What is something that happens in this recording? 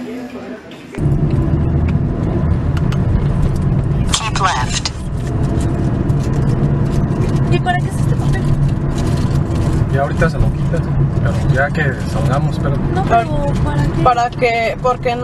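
A car drives along a road, its engine and tyre rumble heard from inside.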